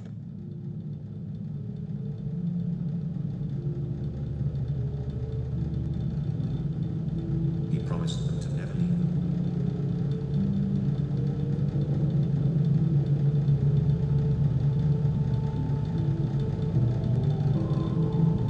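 An electric fan hums and whirs steadily.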